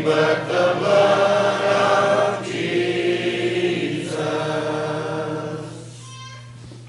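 A teenage boy speaks through a microphone in an echoing hall.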